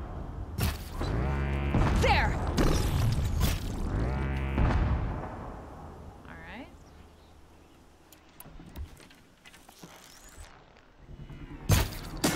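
A bow twangs as arrows are fired.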